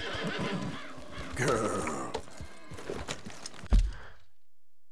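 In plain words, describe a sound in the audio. A horse's hooves thud on the ground.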